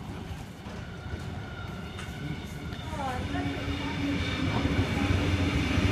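Train brakes squeal briefly as the train slows.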